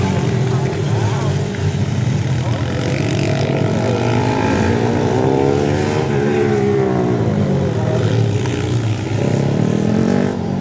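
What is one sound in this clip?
Several dirt bike engines whine and rev at varying distances.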